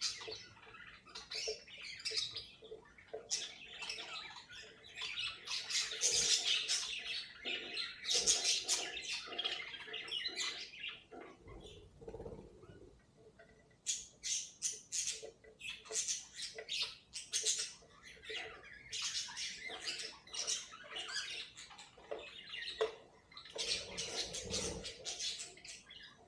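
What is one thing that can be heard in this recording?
Small birds chirp and chatter busily close by.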